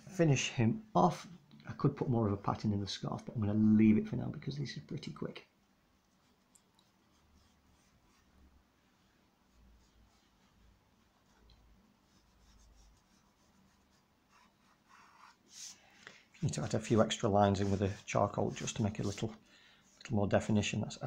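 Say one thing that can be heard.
Chalk pastel scratches softly across paper.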